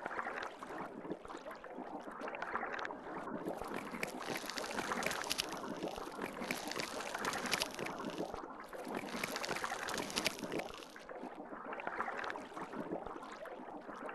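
Water swirls and rushes steadily underwater.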